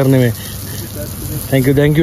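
Water splashes from a hose onto the ground.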